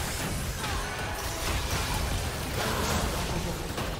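Magic spells crackle and boom in a fight.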